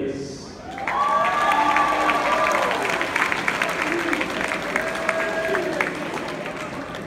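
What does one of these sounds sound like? A crowd cheers and calls out loudly in a large echoing hall.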